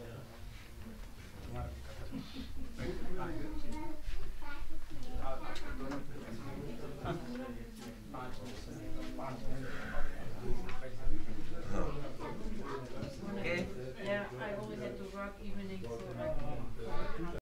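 Several adults talk nearby in low voices.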